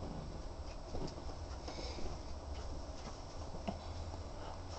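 A guitar knocks and thuds as it is moved about close by.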